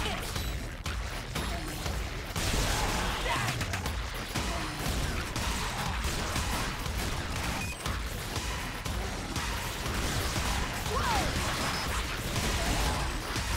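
Rapid electronic gunfire and explosions crackle from a video game.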